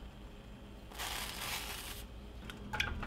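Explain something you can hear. Dry grains pour into a pot of liquid with a soft rushing hiss.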